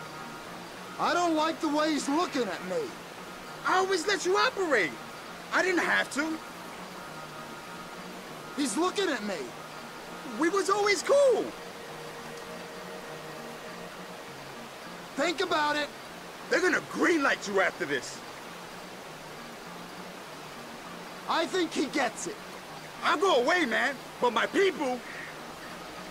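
A man pleads with animation, close by.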